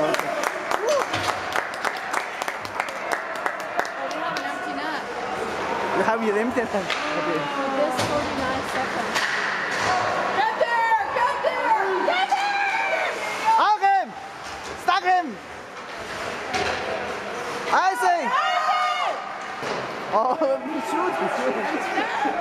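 Skates scrape and carve across ice in a large echoing rink.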